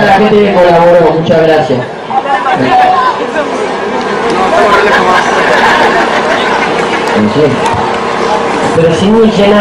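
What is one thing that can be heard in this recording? A large crowd murmurs and chatters outdoors.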